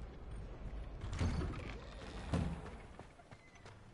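A heavy wooden door swings open.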